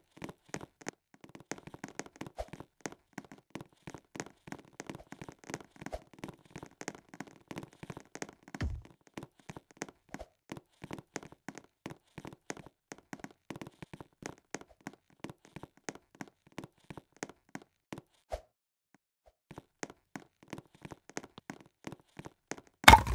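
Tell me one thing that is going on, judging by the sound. Quick footsteps tap on a wooden floor.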